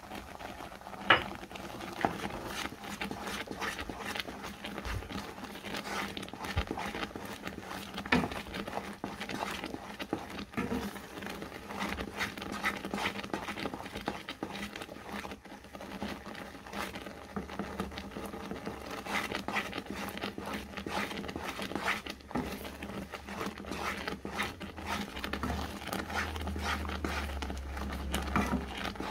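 A wooden spoon scrapes and stirs thick sauce in a pan.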